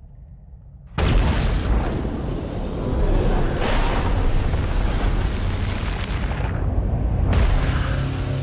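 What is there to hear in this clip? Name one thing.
A magical energy roars and swells loudly.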